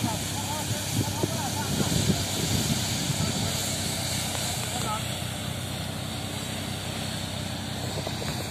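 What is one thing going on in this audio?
A threshing machine engine drones steadily outdoors.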